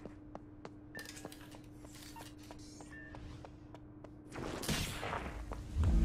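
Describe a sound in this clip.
Footsteps run on a hard floor.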